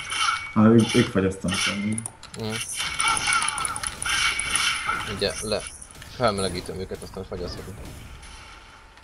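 Magic blasts and sword strikes crash in a fast fight.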